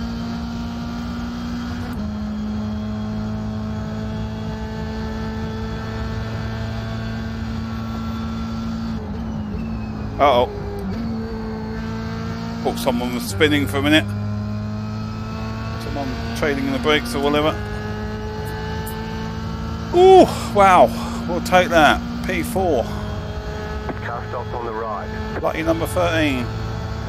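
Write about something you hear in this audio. A racing car engine drones steadily, shifting gears now and then.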